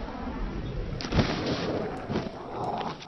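An explosion bursts with a loud roaring blast.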